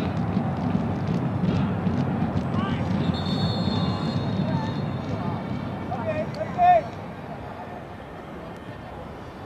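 A crowd murmurs and cheers faintly in a large open stadium.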